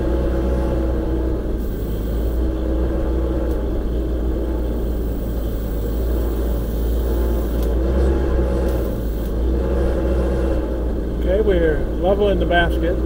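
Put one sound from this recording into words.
A machine's engine hums steadily nearby.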